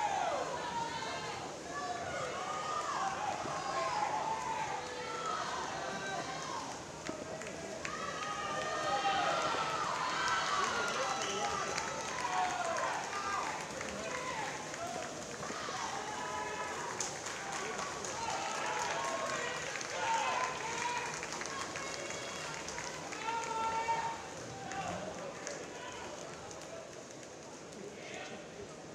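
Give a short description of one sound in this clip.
Swimmers splash through the water.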